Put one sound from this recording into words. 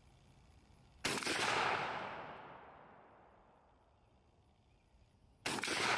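A shotgun fires with a loud blast that echoes away.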